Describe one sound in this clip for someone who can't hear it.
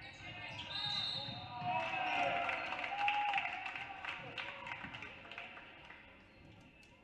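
A crowd cheers in a large echoing gym.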